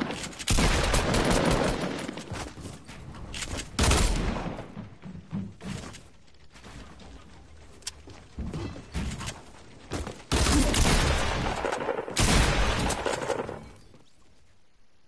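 Gunfire bangs in quick, loud bursts.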